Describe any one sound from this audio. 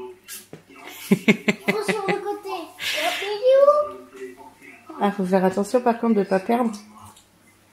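Young children laugh and shriek excitedly close by.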